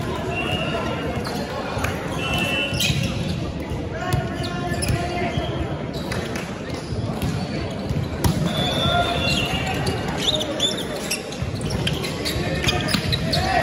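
Shoes squeak on a wooden sports floor.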